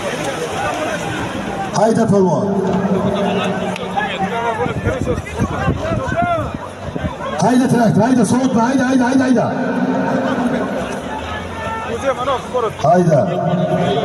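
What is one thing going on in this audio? A large crowd of men shouts and clamours loudly outdoors.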